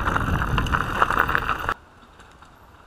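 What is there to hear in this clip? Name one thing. Bike tyres rumble and rattle over a rough dirt trail.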